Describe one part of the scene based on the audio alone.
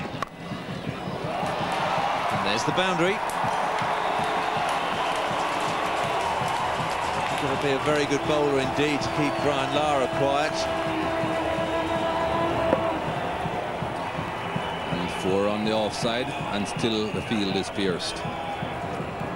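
A large crowd cheers and roars loudly outdoors.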